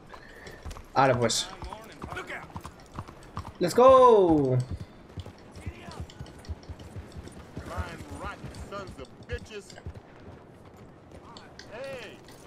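Horse hooves clop on cobblestones.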